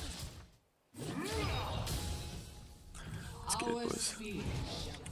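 Magic blasts burst and crackle in a busy fight.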